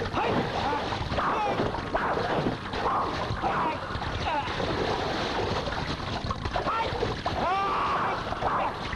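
Water splashes loudly as two men scuffle.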